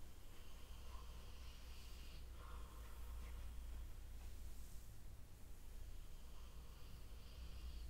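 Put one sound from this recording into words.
Hands softly brush and rustle through long hair.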